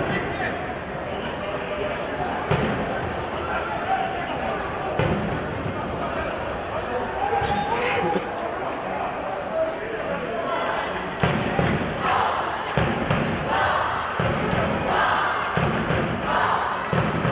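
Distant players shout to each other outdoors.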